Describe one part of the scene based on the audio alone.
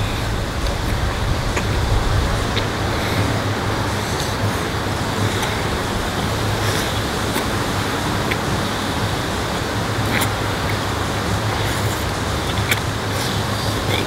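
A man chews candy noisily.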